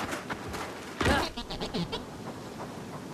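A gun fires a short burst of shots.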